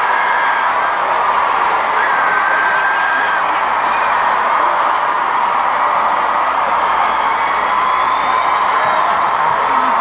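Live music plays loudly through large speakers.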